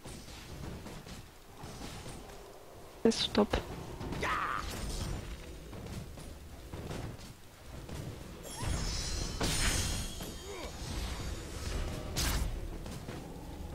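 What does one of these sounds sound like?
Game minions clash with sharp hits.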